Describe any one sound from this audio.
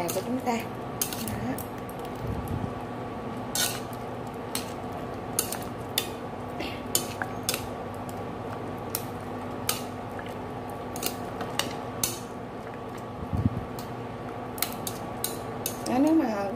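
Chopsticks clink and scrape against a metal pot.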